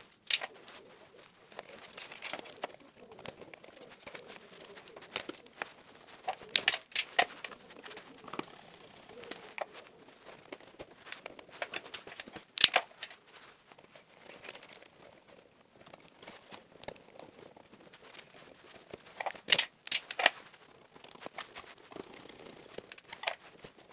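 Wires and plastic parts click and rustle under working hands.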